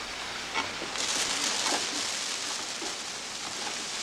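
A firework fuse fizzes and sparks nearby.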